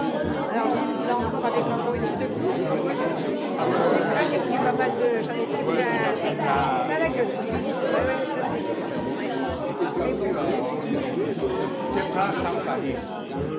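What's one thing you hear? Many men and women chat at once in a large echoing hall.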